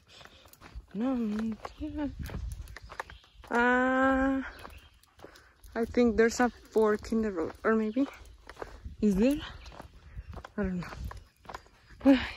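A small dog trots along a dirt path.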